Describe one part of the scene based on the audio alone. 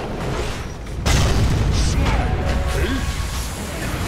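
Magic blasts and clashing battle effects crash loudly in a video game.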